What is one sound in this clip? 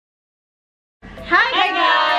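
A young woman greets cheerfully close by.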